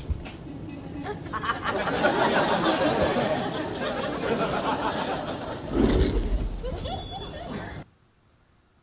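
An older woman speaks loudly and firmly.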